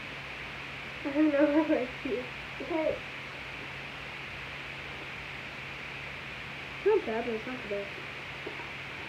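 A young girl speaks close by in short bursts.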